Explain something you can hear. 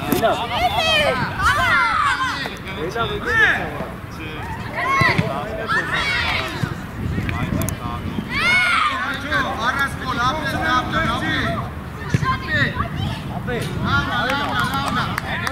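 Children shout and call out excitedly across an open outdoor field.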